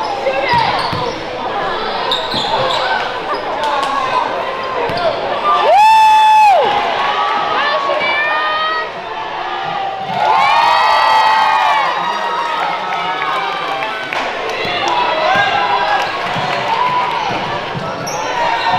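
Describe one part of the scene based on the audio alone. A crowd of spectators murmurs and calls out in an echoing gym.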